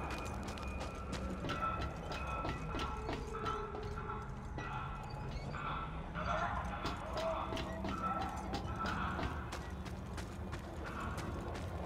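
Footsteps thud on metal and wooden planks.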